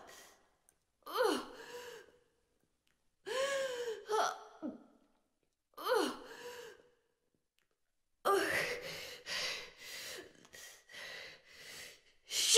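A young woman speaks quietly and tensely in short phrases.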